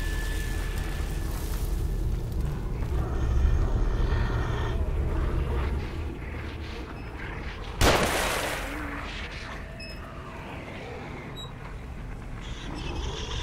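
Footsteps shuffle slowly over damp ground.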